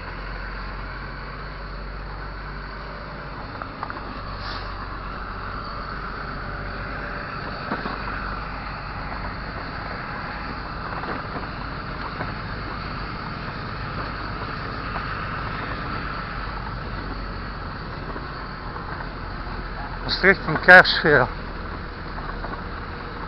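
Cars drive by in street traffic.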